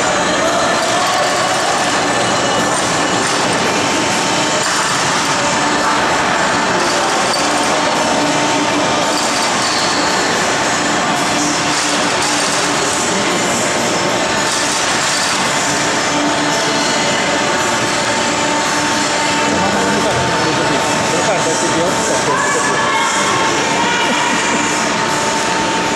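A crowd murmurs and chatters steadily in a large echoing arena.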